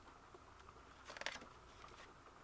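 A book page rustles as it is turned.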